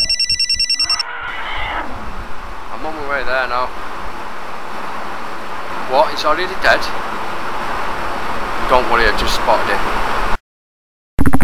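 A man speaks close by in an urgent, earnest voice.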